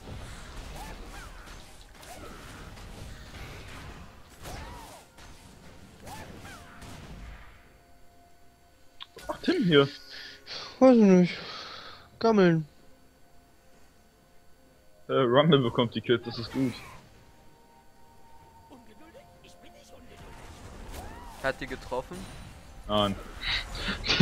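Magic blasts crackle and whoosh in a fight.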